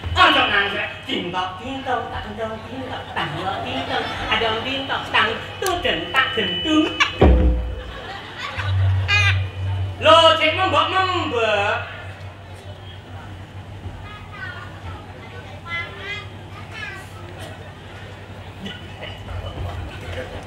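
A middle-aged man talks and laughs through a microphone.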